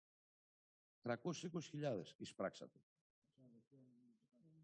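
An elderly man reads aloud into a microphone, heard through an online call.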